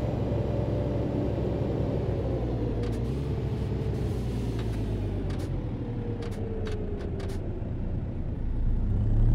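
A heavy truck engine rumbles steadily as the truck slows down.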